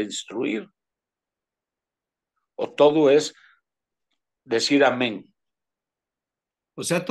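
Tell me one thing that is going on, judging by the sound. An elderly man speaks in short phrases over an online call.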